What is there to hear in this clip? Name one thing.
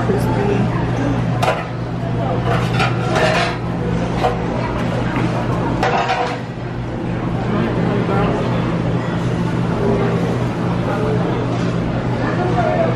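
Many people chatter in the background of a large indoor space.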